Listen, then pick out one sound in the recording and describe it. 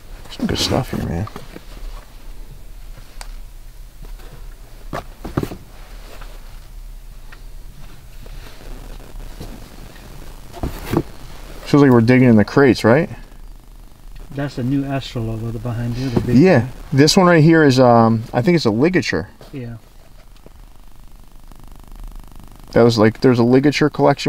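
Caps rustle and tap softly as they are handled.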